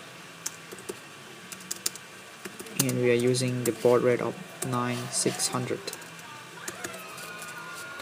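A keyboard clicks as keys are typed.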